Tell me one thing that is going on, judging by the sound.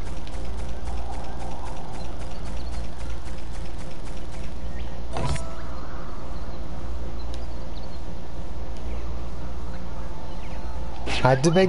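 A game character's spinning tail whirs as it flies.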